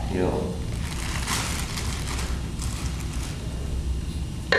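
Paper rustles as a woman handles it.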